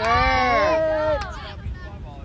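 Young girls cheer and shout nearby.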